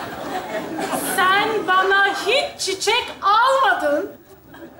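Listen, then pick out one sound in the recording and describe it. A woman exclaims loudly in surprise.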